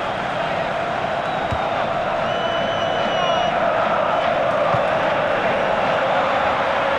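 A large stadium crowd roars and whistles steadily.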